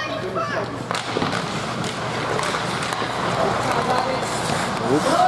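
Skates scrape and hiss on ice in an echoing rink.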